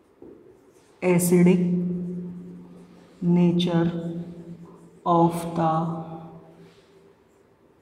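A man speaks in slow, drawn-out phrases.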